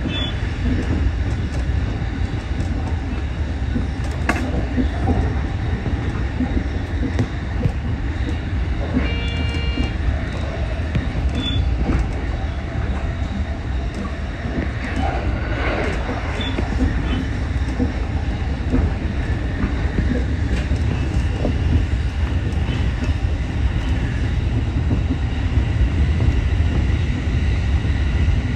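A train rumbles steadily along the tracks, wheels clattering over rail joints.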